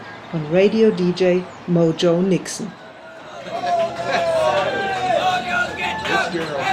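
A man calls out loudly and excitedly nearby.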